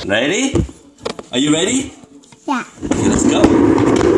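A young child laughs and babbles close by.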